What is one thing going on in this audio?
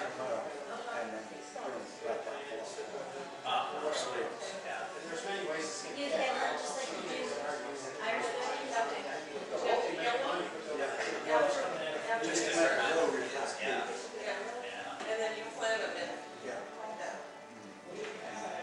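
A young man talks calmly in a large echoing hall.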